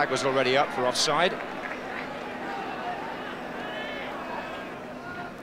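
A large crowd murmurs and chants across an open stadium.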